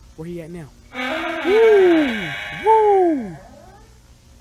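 A young man screams in fright close to a microphone.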